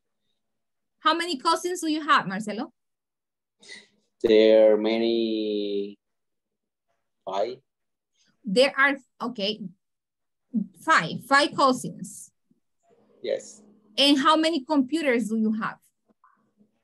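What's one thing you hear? A young woman speaks over an online call, asking questions.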